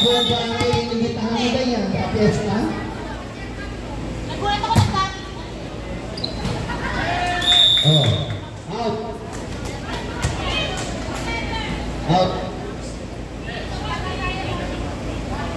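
A crowd of spectators chatters in the background.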